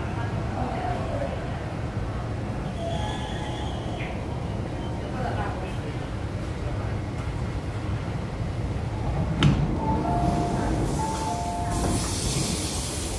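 A train rumbles steadily along a platform.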